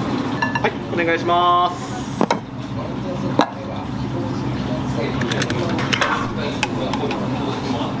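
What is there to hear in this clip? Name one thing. A ceramic bowl is set down on a counter with a light knock.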